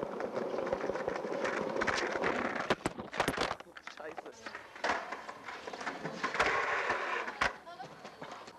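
Skateboard wheels roll and rumble over pavement.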